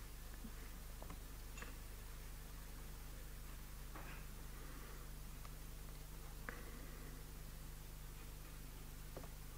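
A laptop keyboard clicks as a man types.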